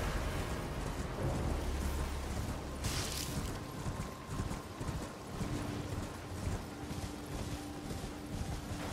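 Hooves gallop over soft ground.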